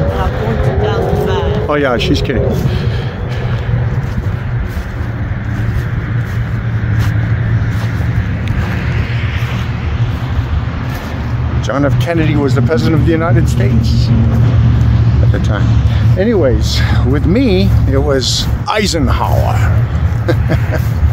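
A middle-aged man talks close to the microphone with animation.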